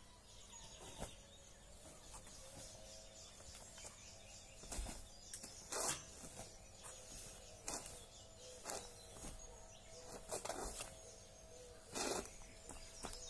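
A fabric uniform snaps sharply with quick strikes and kicks.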